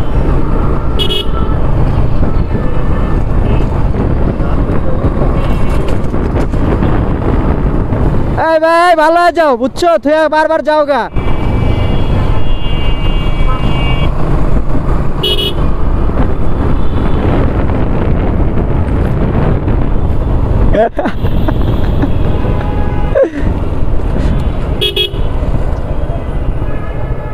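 Wind buffets the microphone on a moving motorcycle.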